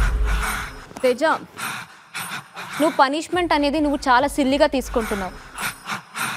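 A young woman speaks with emotion, close by.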